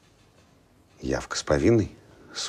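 An older man speaks in a low, firm voice close by.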